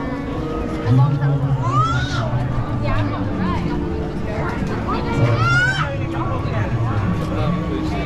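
A crowd of people chatters all around outdoors.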